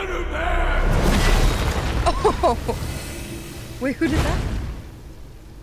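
A monster growls with a deep, loud rumble.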